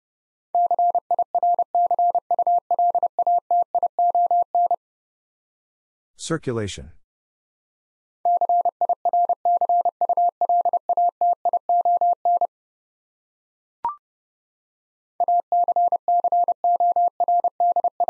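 A Morse code key taps out fast bursts of short and long beeps.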